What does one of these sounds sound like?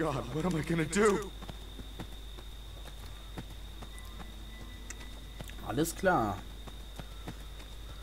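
Footsteps run quickly over leaves and dirt.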